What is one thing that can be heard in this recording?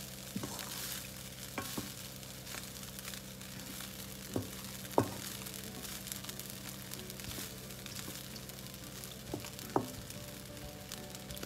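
Rice sizzles in a hot wok.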